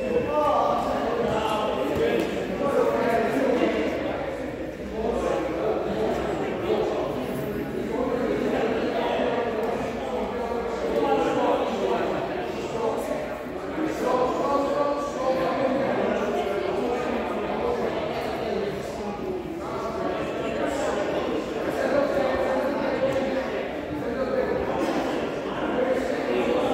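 Many men and women talk at once in a large echoing hall.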